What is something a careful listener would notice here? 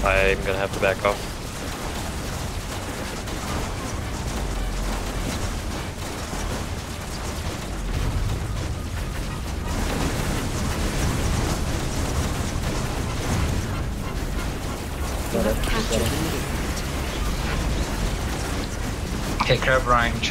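Laser weapons fire and buzz steadily.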